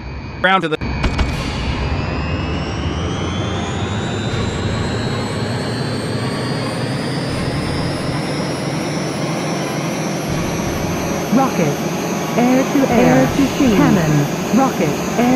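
A jet engine roars louder and rises steadily in pitch as it speeds up.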